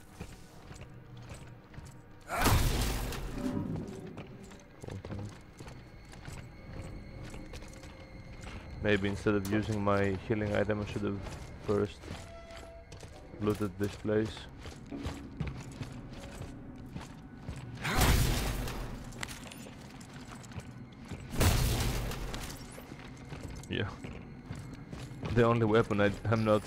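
Heavy boots thud slowly on a metal floor.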